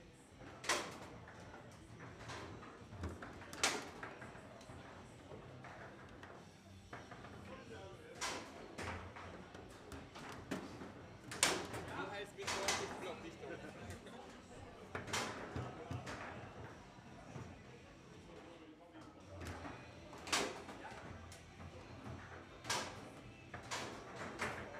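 Table football rods rattle and spin.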